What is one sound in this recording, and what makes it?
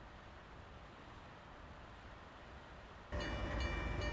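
Freight wagons rumble along the rails.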